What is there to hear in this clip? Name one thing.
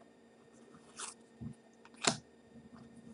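A card rubs and taps softly as it is flipped over in the hands.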